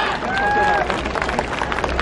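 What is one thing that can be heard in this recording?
Onlookers clap their hands.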